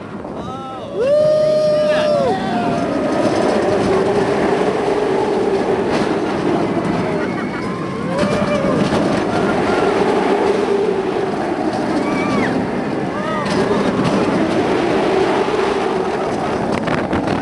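Wind rushes loudly past a fast-moving ride.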